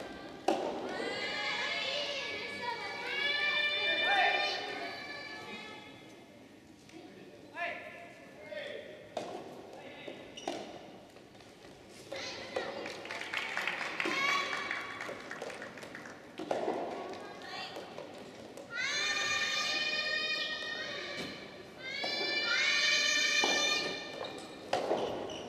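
Young women shout and cheer loudly in an echoing hall.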